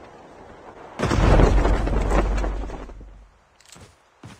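A loud heavy rumble and thud sound as a soldier lands.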